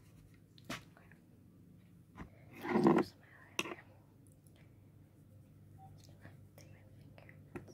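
A young girl speaks softly, close by.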